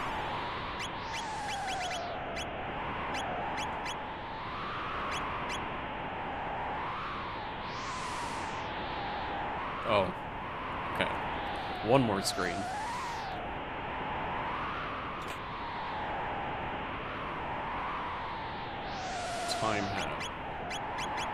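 Short electronic blips sound in quick succession.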